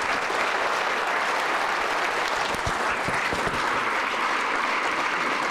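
An audience claps steadily in a large room.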